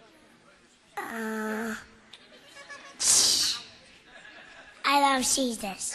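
A young boy speaks loudly into a microphone.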